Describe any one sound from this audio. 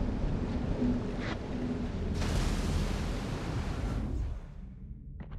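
Ship guns boom and explosions rumble in a naval battle.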